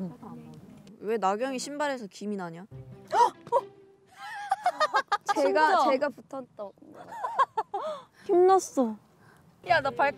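Young women talk and laugh with animation close by.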